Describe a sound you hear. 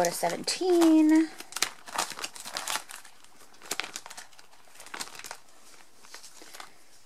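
Plastic album sleeves crinkle and rustle as pages are turned.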